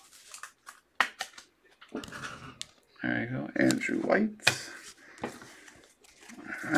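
Card packaging crinkles and rustles in hands.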